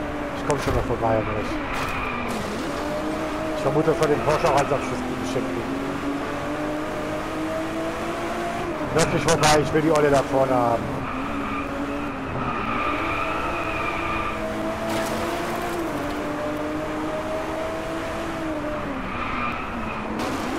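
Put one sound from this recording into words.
Tyres screech through tight corners.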